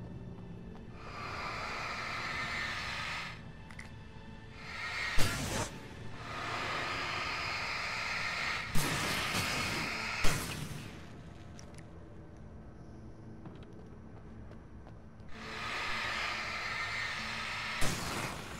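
A burning flare hisses and crackles loudly.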